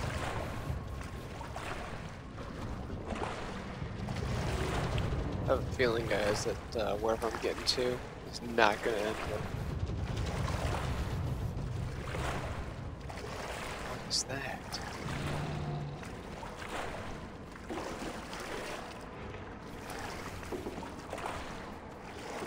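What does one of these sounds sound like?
Water sloshes steadily as someone wades through it.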